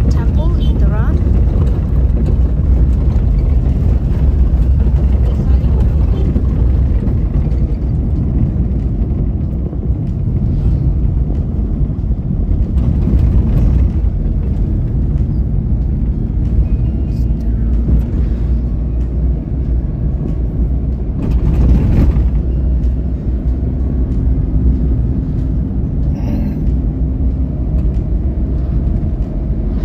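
A vehicle's engine hums steadily with road rumble from inside as it drives along.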